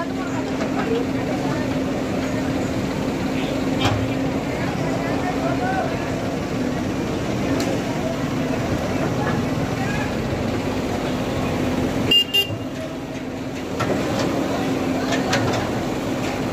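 A backhoe loader's diesel engine rumbles steadily nearby.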